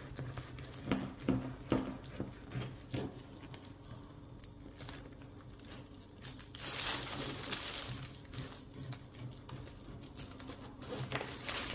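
A knife taps against a plastic cutting board.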